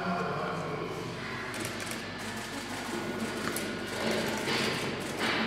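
Several men talk urgently nearby.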